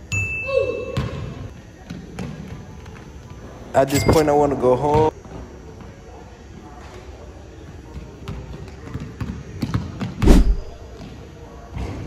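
A basketball bounces on a hard wooden floor in an echoing hall.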